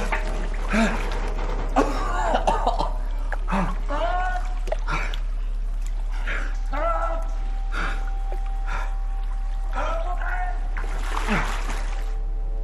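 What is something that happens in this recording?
A man gasps and shouts in panic.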